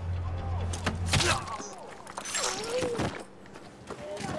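A short struggle ends with a heavy thud.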